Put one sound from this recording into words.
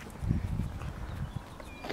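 A dog sniffs at the ground.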